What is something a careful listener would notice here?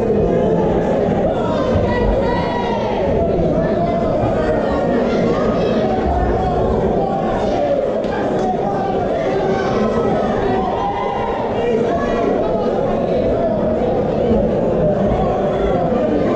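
A crowd of men and women chatters and shouts loudly in a large echoing hall.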